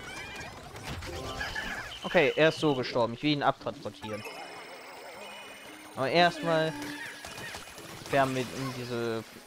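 Small cartoon creatures squeak and chatter in a video game.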